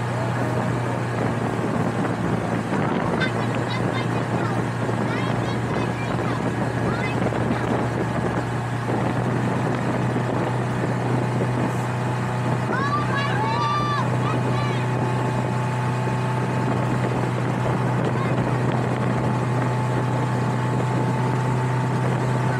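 Wind and water rush past loudly.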